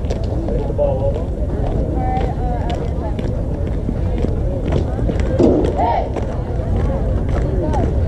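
Girls and young women cheer and call out nearby, outdoors.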